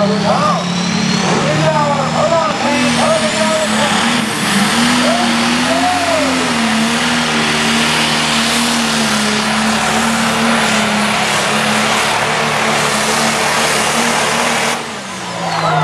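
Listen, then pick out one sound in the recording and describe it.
A tractor engine roars loudly at full power.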